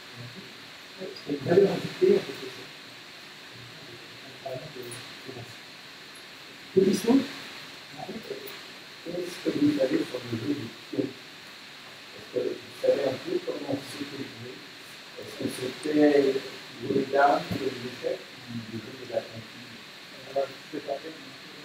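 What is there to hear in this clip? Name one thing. An older man talks with animation from nearby, without a microphone.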